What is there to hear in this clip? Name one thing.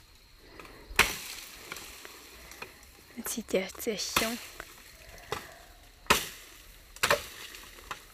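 A machete chops into bamboo with sharp knocks.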